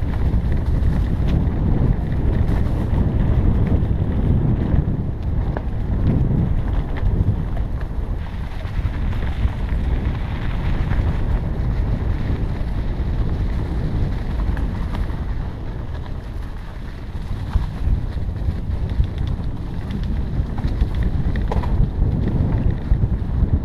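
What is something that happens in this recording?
Tyres crunch and bump over dirt and sticks.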